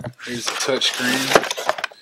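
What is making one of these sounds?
A cardboard box lid is opened with a rustle.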